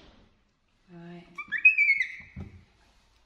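A young monkey squeals shrilly.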